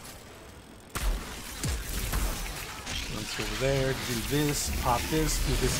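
A blast of ice bursts and hisses.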